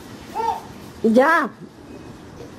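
A teenage girl squeals loudly.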